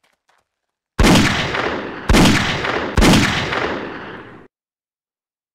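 Pistol shots crack loudly one after another.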